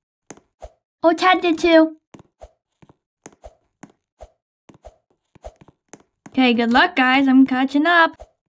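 A young girl speaks excitedly and close up.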